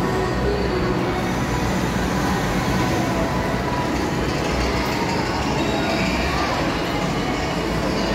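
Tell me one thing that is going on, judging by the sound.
A fairground swing ride whirs as it spins.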